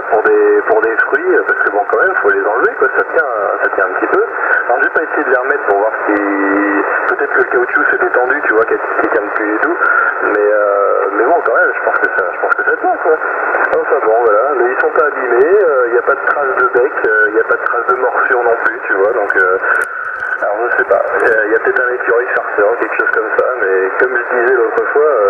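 A radio receiver plays thin, crackly sound through its small loudspeaker.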